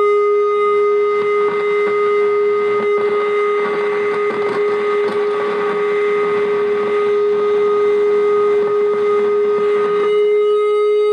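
Noisy, crackling synthesizer tones shift and warble.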